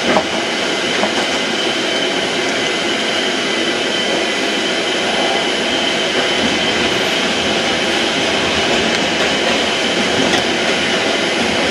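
A subway train rumbles and rattles steadily as it rolls along.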